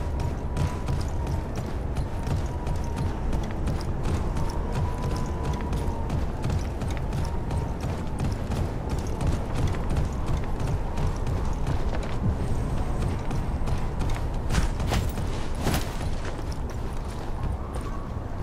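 Footsteps thud steadily as a soldier runs.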